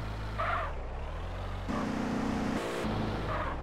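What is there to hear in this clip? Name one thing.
Car tyres screech on concrete.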